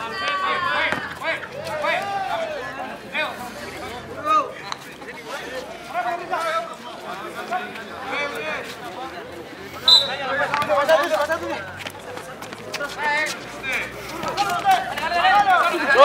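A crowd of young men shouts and cheers outdoors.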